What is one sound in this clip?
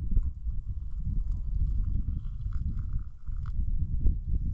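Hot liquid pours and trickles into a cup.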